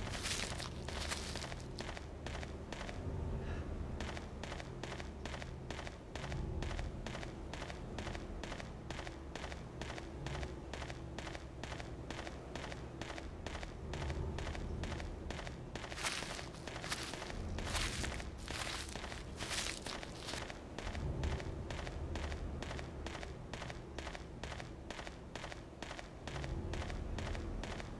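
Quick footsteps run over a dirt path.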